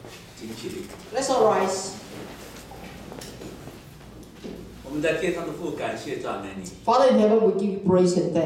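A man speaks into a microphone at a lectern, echoing through loudspeakers.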